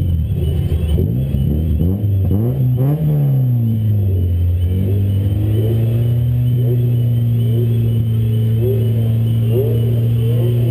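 A car engine revs hard, rising and falling, then holds a steady drone.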